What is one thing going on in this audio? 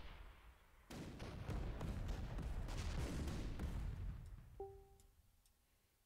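A loud explosion booms and rumbles, then dies away.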